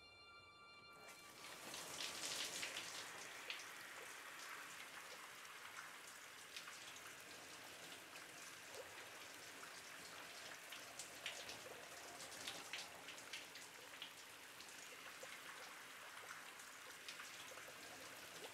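Water sprays from a shower head.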